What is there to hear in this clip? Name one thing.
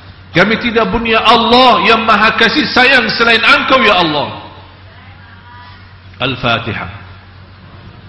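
A man speaks with feeling into a microphone in an echoing hall.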